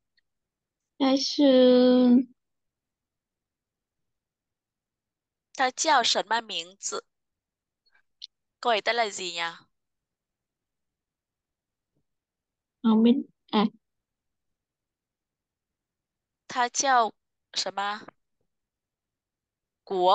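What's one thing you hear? A woman speaks slowly in short phrases through an online call, with long pauses.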